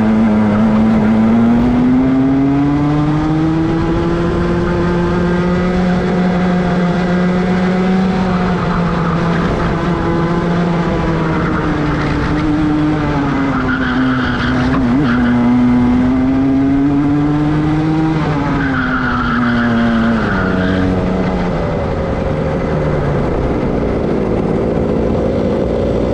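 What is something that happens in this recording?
A kart engine revs loudly, rising and falling in pitch as it speeds up and slows down.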